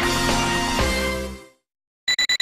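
A short triumphant music jingle plays and cuts off.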